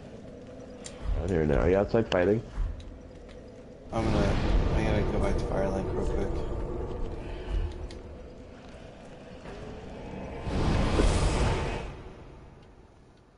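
A young man talks animatedly into a microphone.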